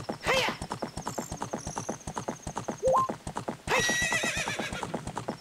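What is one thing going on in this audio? A horse's hooves gallop quickly and steadily.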